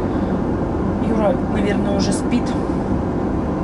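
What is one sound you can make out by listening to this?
A middle-aged woman speaks briefly and calmly, close by.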